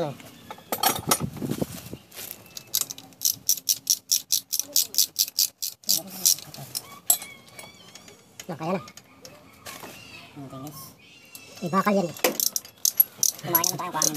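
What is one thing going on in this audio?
Small metal engine parts clink against each other.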